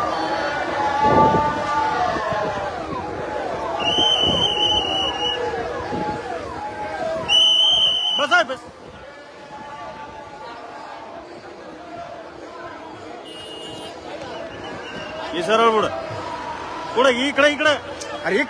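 A large crowd of men chatters and shouts outdoors.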